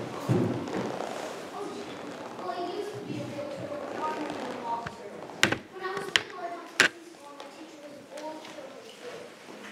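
A young girl answers on stage, heard from across a hall.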